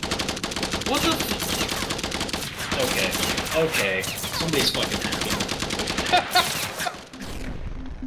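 Rapid gunfire crackles in quick bursts.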